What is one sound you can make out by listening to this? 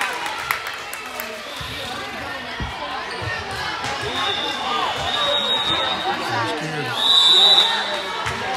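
Many voices chatter and call out in a large echoing gym.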